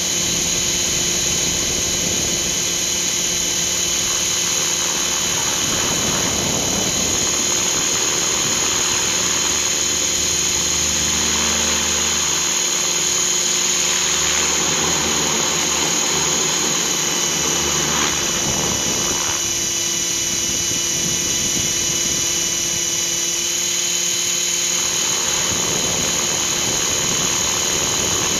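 An electric model helicopter's motor and rotor whine steadily in flight.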